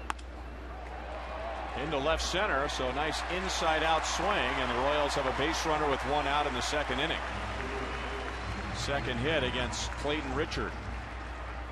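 A large stadium crowd cheers loudly, then dies down.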